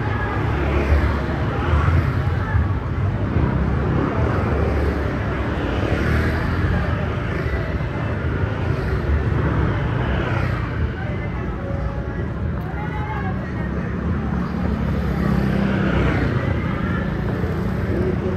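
Footsteps scuff regularly on pavement close by.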